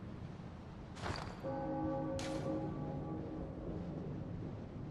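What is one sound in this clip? A soft chime sounds as a menu opens.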